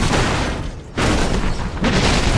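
A car explodes with a loud boom.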